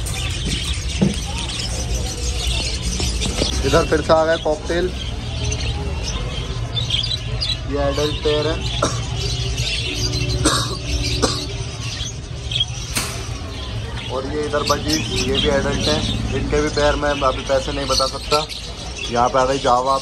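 Many small birds chirp and twitter busily close by.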